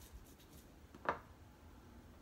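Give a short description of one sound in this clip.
A glass bowl clinks against another glass bowl.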